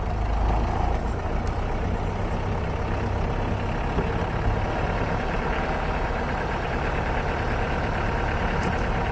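A vehicle engine rumbles steadily as it drives over a bumpy dirt track.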